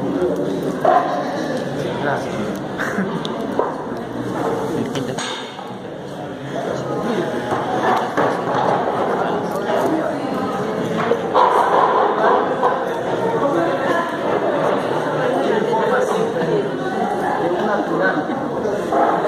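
A man speaks to a small group, explaining with animation.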